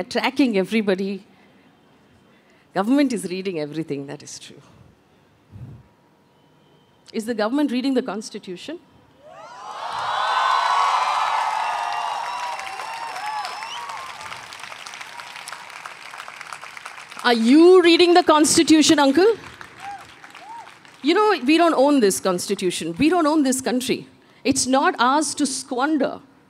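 A woman speaks calmly into a microphone, heard through loudspeakers in a large room.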